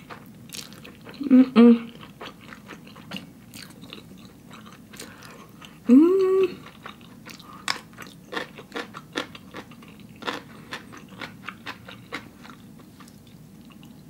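A young woman chews crunchy food noisily close to the microphone.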